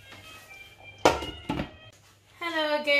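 A metal lid clinks against a pot.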